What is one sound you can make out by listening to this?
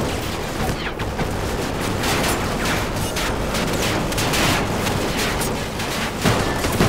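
Explosions boom and rumble all around.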